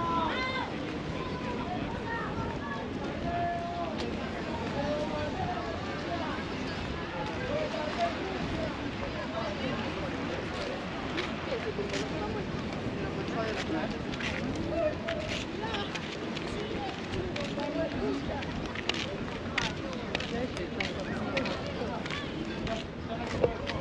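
Small waves wash gently onto a pebbly shore.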